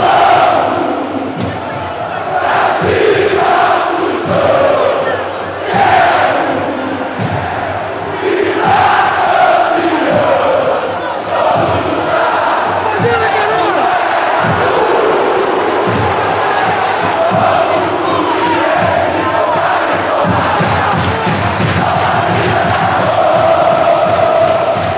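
A huge stadium crowd sings a chant in unison, echoing loudly.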